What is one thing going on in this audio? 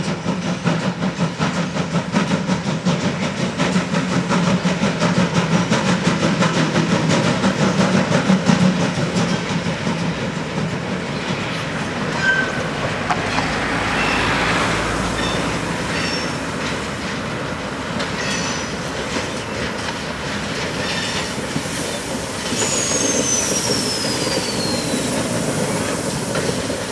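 Freight wagons rumble and clatter over the rails.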